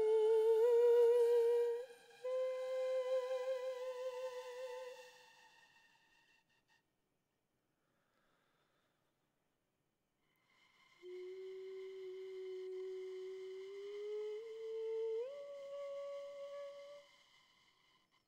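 A man sings long, wavering notes through a microphone.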